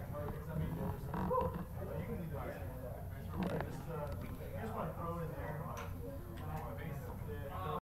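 A middle-aged man speaks calmly, close to the microphone, in a large echoing room.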